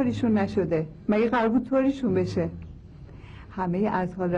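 A middle-aged woman speaks with animation, close by.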